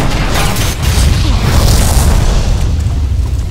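A loud explosion booms and roars.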